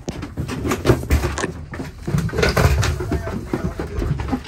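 Footsteps thud down metal stairs.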